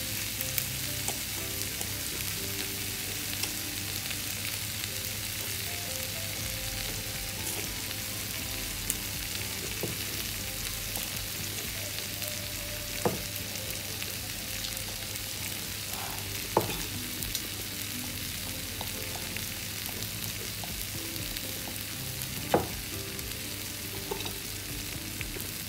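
Meat sizzles on a hot grill.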